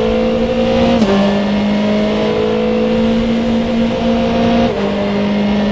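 Gear shifts clunk sharply.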